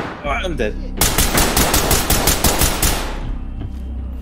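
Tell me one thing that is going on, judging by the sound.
Rapid gunfire rattles in quick bursts.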